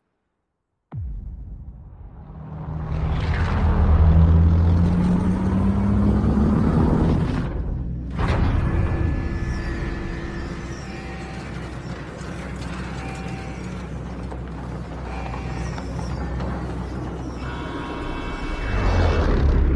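Helicopter rotors thump loudly and steadily.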